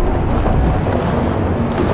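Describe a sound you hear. Footsteps run over rocks and gravel.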